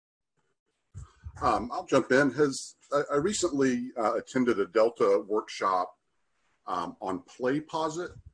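An older man speaks calmly over an online call.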